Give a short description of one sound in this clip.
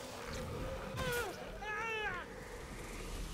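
Monsters shriek and wail in high, bending cries.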